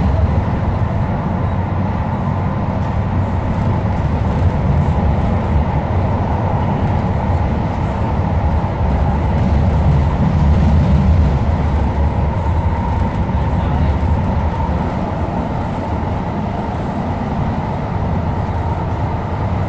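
An electric light-rail train rumbles along the track, heard from inside the carriage.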